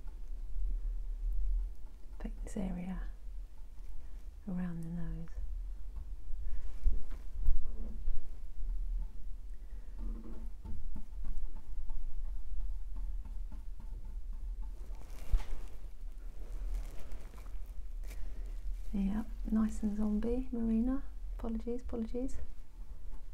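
A brush softly strokes paint onto a canvas.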